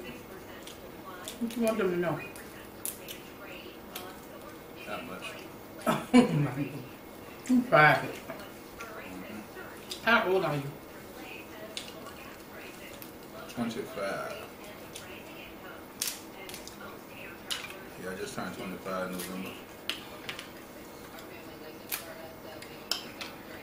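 Crab shells crack and snap between a man's hands.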